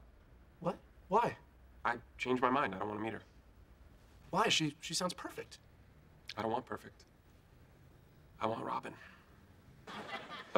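A young man talks in short bursts nearby.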